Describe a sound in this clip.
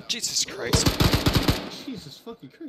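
Rifles fire in rapid bursts at close range.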